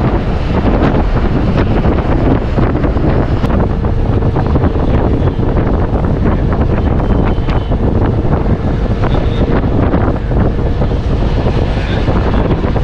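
A bus engine rumbles loudly while driving.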